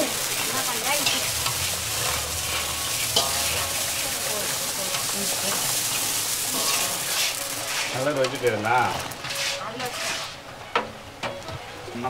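A metal ladle scrapes and clinks against a pan.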